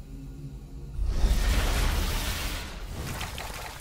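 Wind rushes across open ground.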